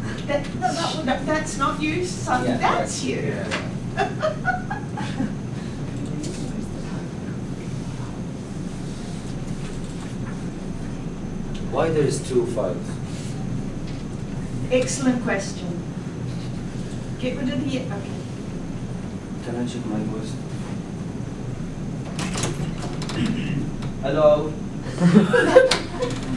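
A young man speaks calmly.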